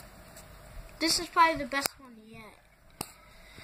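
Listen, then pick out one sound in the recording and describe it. A young boy speaks close to the microphone.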